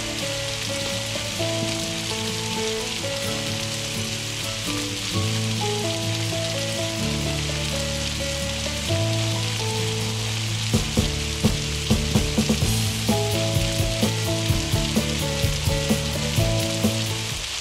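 Water sprays steadily from a shower.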